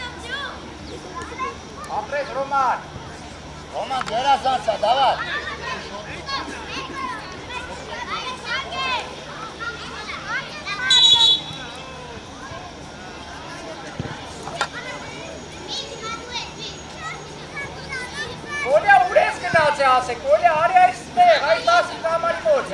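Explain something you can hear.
Children shout to each other across an open field.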